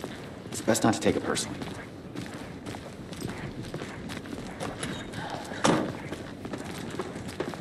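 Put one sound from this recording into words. Footsteps tread on pavement outdoors.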